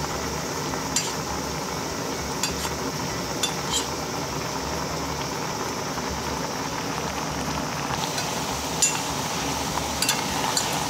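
A metal spoon clinks against the side of a pot.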